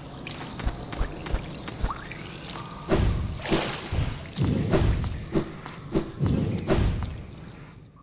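Light footsteps patter quickly.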